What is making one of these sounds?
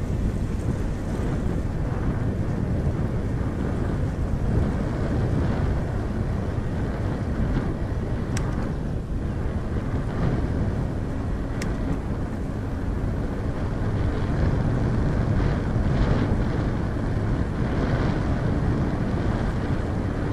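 Tyres roll along a paved road.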